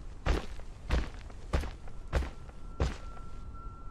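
Heavy footsteps thud slowly on hard ground.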